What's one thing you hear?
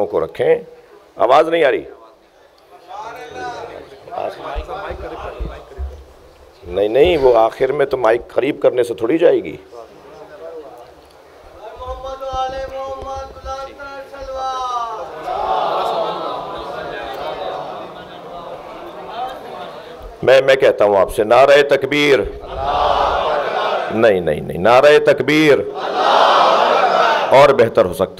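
A man speaks with passion into a microphone, his voice ringing through a loudspeaker in a large echoing hall.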